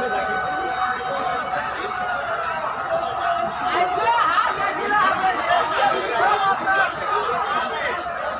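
A crowd of men chants and shouts slogans outdoors while marching.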